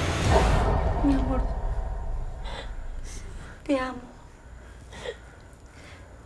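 A woman speaks softly and tenderly close by.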